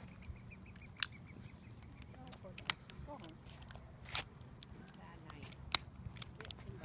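A lighter clicks sharply a few times.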